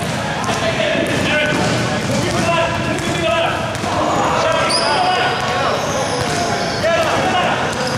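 Sneakers squeak sharply on a hard court floor, echoing in a large hall.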